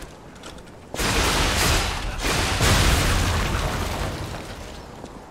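Sparks crackle and burst with fiery bangs.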